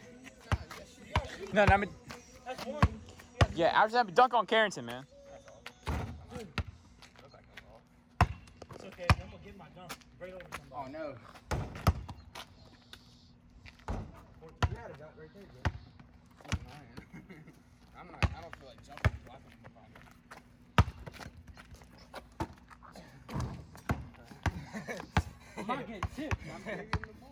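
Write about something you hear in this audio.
A basketball bounces hard on pavement again and again.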